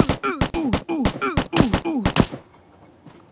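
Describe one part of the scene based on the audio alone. A blade swings and strikes in quick blows.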